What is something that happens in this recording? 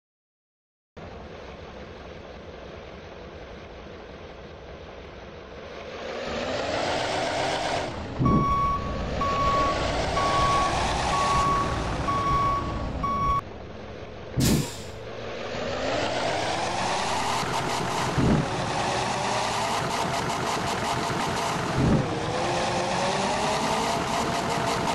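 A bus engine idles, then revs up and down as the bus pulls away and shifts gears.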